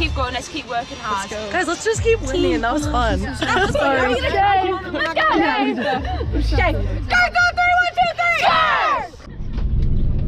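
Young women talk and laugh excitedly close by.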